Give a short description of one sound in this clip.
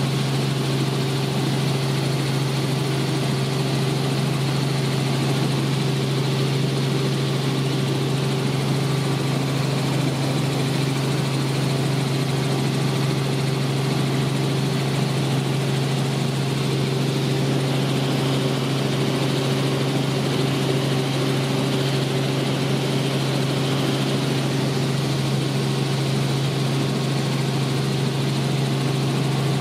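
A helicopter engine and rotor drone loudly and steadily from inside the cabin.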